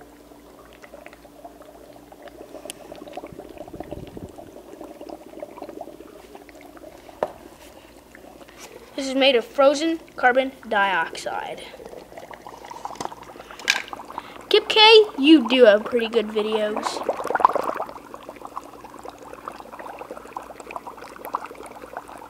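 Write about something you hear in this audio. A mist maker hisses softly and steadily.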